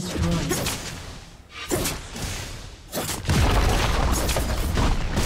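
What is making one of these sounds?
Fantasy combat sound effects burst and crackle in quick succession.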